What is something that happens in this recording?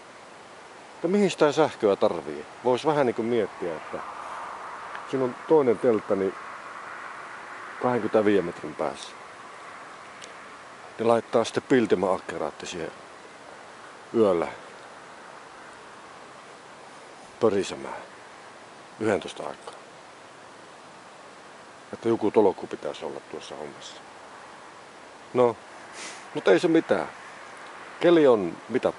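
An older man speaks calmly in short bursts close to the microphone.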